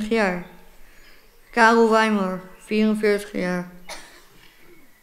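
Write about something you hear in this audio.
A child speaks clearly into a microphone.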